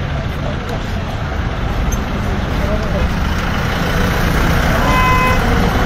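Men rummage through the back of a small electric rickshaw.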